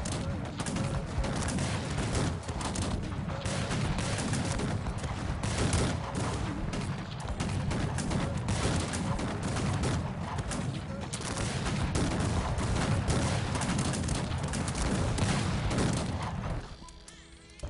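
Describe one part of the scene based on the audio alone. Musket fire crackles in dense, rapid volleys of a large battle.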